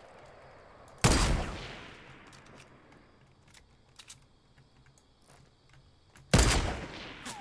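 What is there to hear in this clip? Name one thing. A rifle fires loud shots that echo away.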